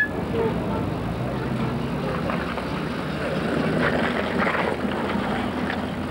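A jeep drives past on a wet road.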